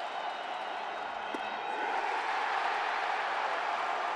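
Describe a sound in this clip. A baseball pops into a catcher's mitt.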